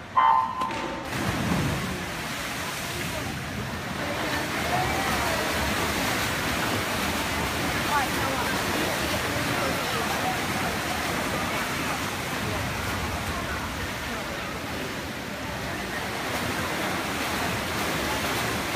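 Swimmers splash through the water of an echoing indoor pool.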